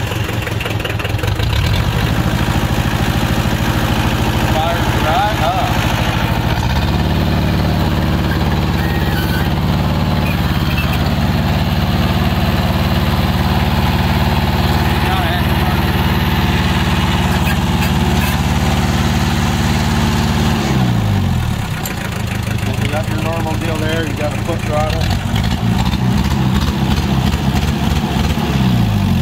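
A man talks calmly over the engine, close by.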